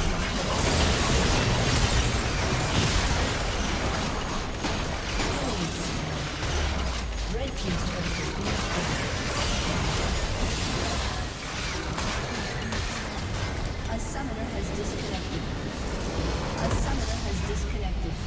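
Spell blasts and clashing magic effects crackle and boom.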